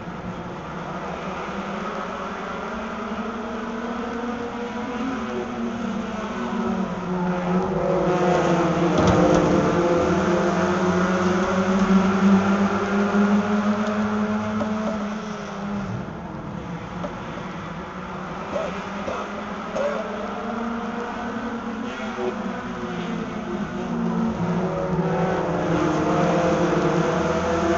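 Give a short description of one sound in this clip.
A race car engine idles loudly and rumbles unevenly from inside the car.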